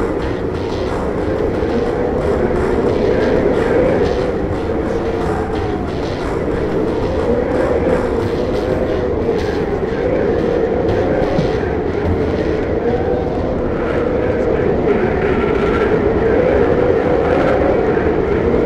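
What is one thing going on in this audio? A strong wind howls steadily through a snowstorm.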